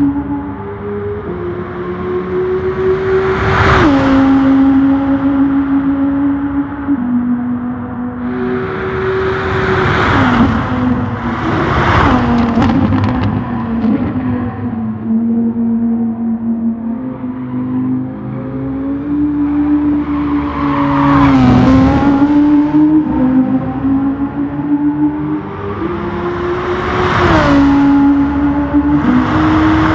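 A race car engine roars at high revs, shifting gears up and down.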